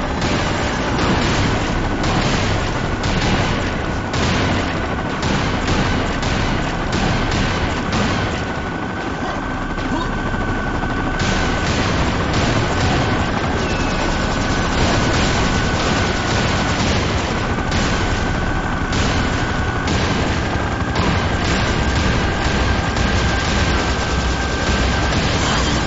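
A multi-barrel gun fires rapid bursts of shots.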